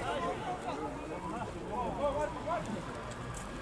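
Men shout to each other outdoors, some distance away.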